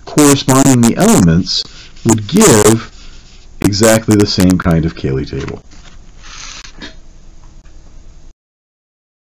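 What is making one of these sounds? A felt-tip marker squeaks and scratches softly across paper.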